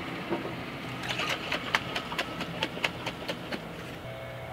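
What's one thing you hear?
Glass bottles clink and rattle.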